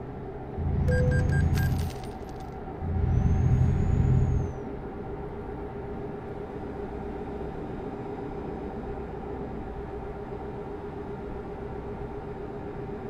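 A truck engine hums steadily while driving.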